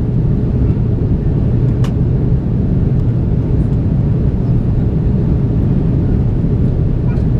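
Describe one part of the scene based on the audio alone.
Jet engines roar steadily in flight, heard from inside an airliner cabin.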